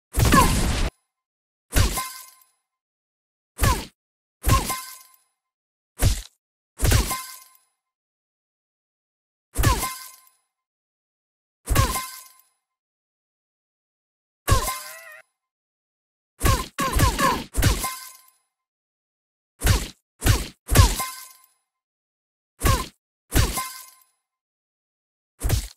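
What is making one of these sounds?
Cartoon punches land with short, sharp smacks again and again.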